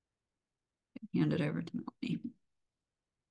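A woman speaks briefly and calmly over an online call.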